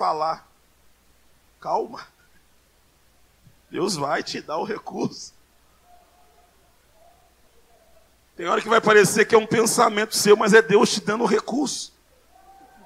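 A man preaches forcefully into a microphone over loudspeakers in a large hall, in bursts with pauses.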